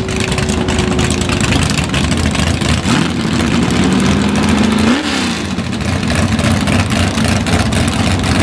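A car's engine idles loudly with a deep rumble.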